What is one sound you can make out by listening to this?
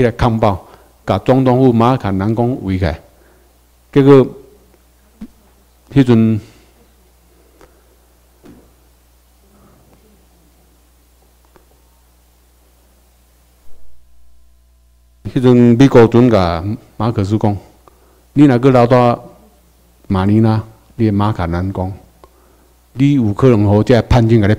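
A man speaks into a microphone over loudspeakers, in bursts with long pauses.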